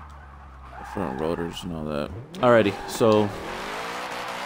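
Tyres screech as a car slides sideways.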